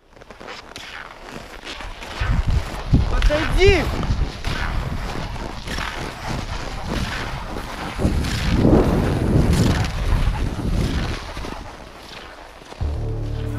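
Skis swish and scrape rhythmically over packed snow.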